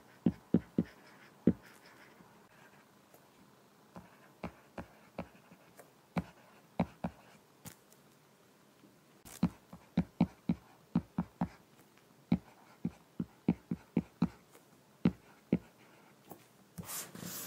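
A stylus taps and clicks against a glass tablet surface.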